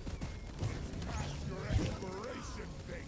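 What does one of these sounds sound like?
Gunfire crackles and blasts rapidly.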